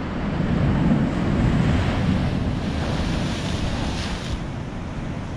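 A wave splashes loudly against rocks.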